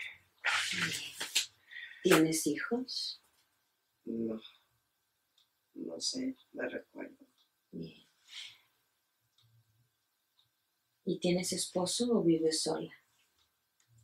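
A woman speaks calmly nearby, in short bursts with pauses.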